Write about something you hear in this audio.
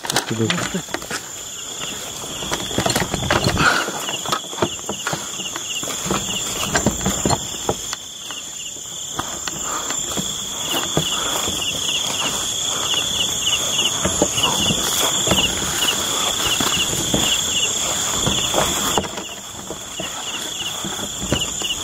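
Footsteps crunch through dry grass and twigs.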